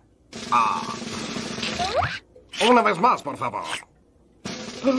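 A man speaks in a nasal, exaggerated cartoon voice.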